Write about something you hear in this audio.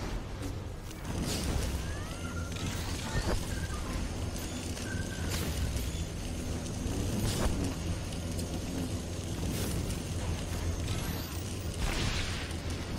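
Sci-fi energy weapons fire and crackle in a video game battle.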